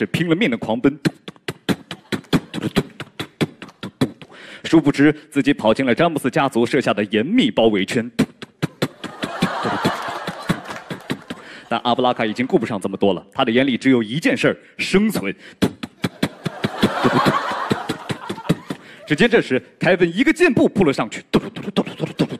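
A young man speaks rhythmically into a microphone between the beats.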